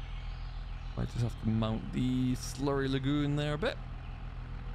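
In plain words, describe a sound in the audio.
Cows moo loudly nearby.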